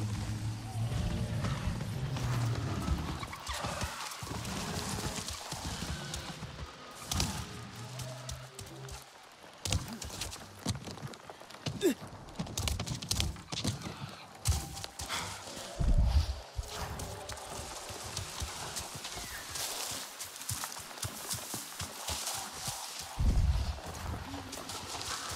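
Footsteps pad through dense undergrowth.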